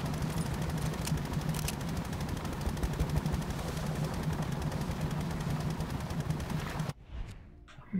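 A boat motor hums steadily over water, then cuts off.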